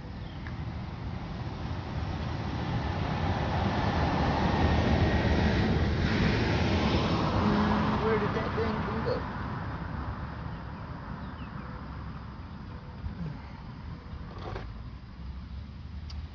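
A man handles parts under a car's hood with faint clicks.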